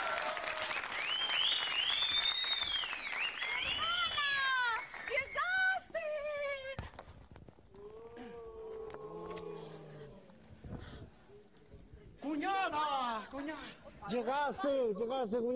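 Young women squeal and shout excitedly close by.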